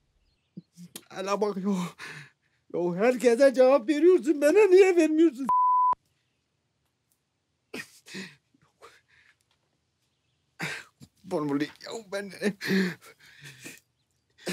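A man speaks nearby in a strained, breathless voice.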